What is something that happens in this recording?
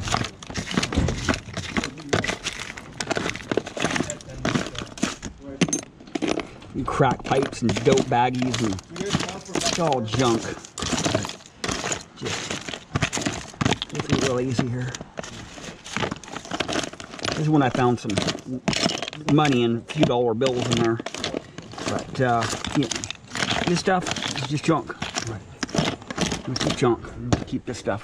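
Small plastic objects rattle and clatter in a plastic tub as gloved hands rummage through them.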